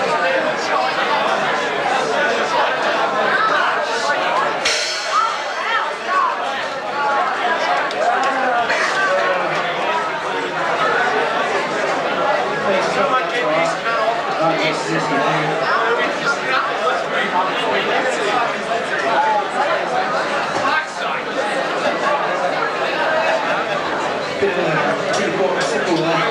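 A live band plays loud, distorted music.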